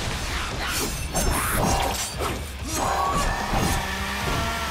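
Blades slash and strike with sharp metallic hits.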